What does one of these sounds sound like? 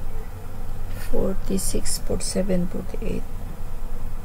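An elderly woman speaks calmly through a microphone.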